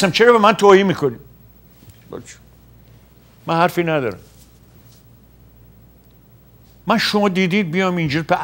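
An elderly man speaks into a close microphone in short, emphatic bursts with pauses.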